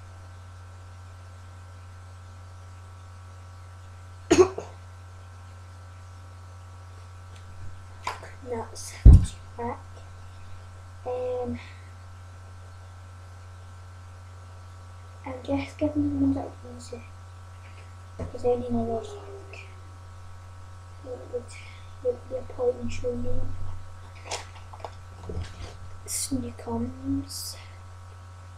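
Magazine pages rustle and flap as they are handled.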